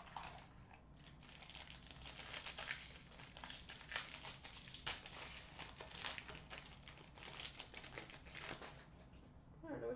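A foil wrapper crinkles and tears as a card pack is opened close by.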